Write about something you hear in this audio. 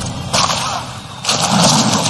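A man splashes and thrashes in the water.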